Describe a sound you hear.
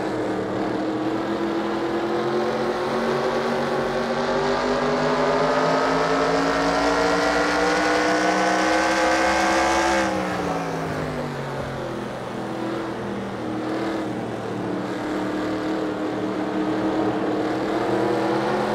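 A race car engine roars, climbing steadily in pitch as it speeds up, then drops sharply as it slows and keeps droning.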